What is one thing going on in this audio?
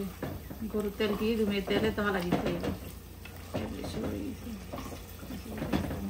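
A spatula stirs a thick stew in a pot.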